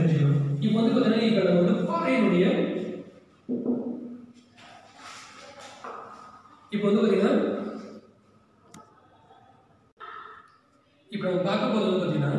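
A man speaks steadily in an echoing room.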